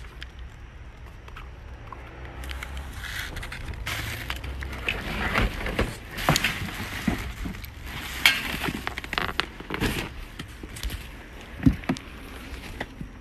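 Objects rattle and knock as they are handled close by.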